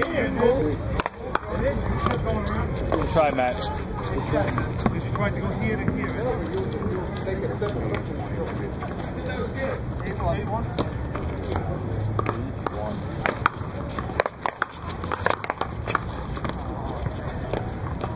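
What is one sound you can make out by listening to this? A rubber ball smacks sharply against a wall again and again.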